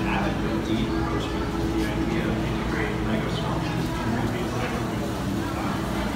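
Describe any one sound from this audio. A crowd of adult visitors murmurs and chats in a large echoing hall.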